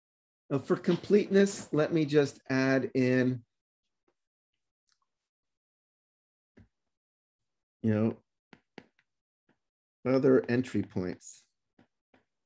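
A man lectures calmly through a microphone, in short bursts with pauses.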